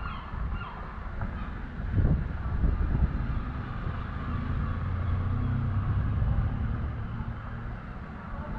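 A small car drives past at low speed.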